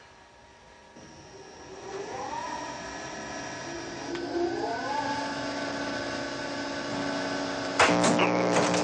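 An electronic tone hums and rises in pitch as a control is pushed up.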